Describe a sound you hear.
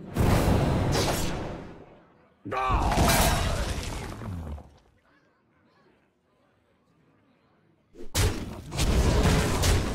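Loud fantasy game effects boom and crackle in bursts.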